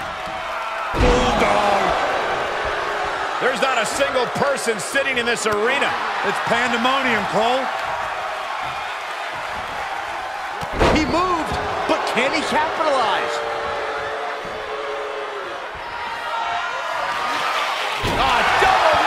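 Bodies slam heavily onto a ring mat.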